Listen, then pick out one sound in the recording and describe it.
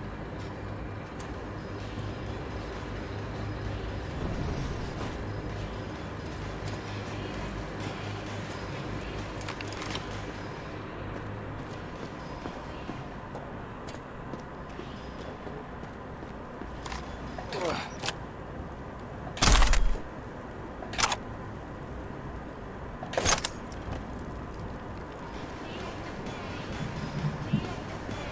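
Footsteps thud on metal and concrete floors.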